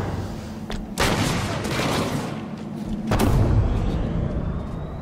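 A rocket blast booms loudly.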